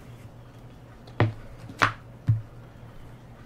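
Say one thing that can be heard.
Playing cards slap and tap onto a table.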